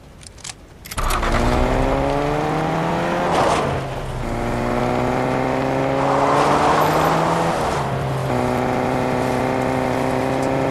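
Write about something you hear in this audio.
A car engine hums and revs up through gear changes.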